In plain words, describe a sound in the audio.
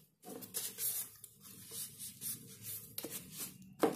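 A plastic cup lid rattles and creaks as hands handle it.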